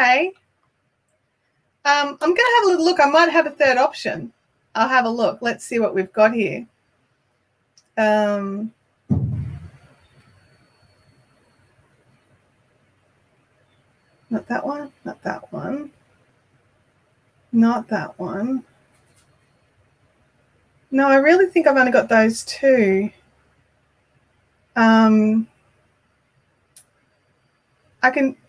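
A woman speaks calmly and close into a microphone, with pauses.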